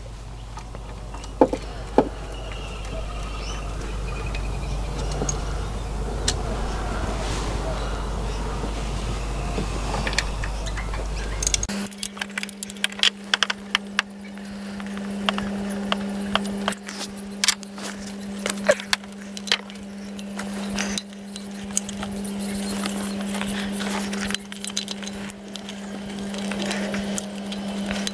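Plastic parts click and rattle under handling.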